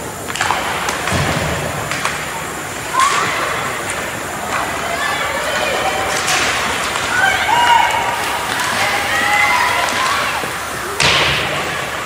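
A hockey puck clacks sharply off sticks and boards.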